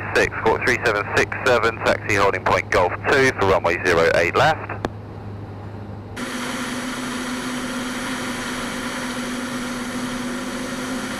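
A small aircraft engine drones steadily.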